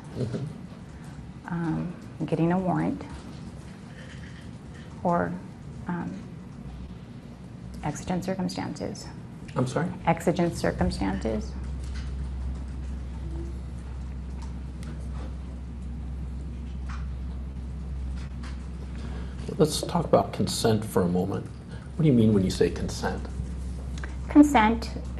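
A woman speaks calmly and hesitantly into a close microphone.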